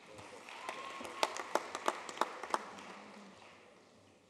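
People clap scattered applause.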